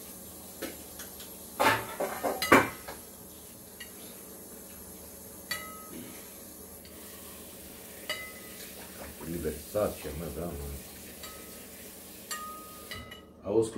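Spoons clink against plates.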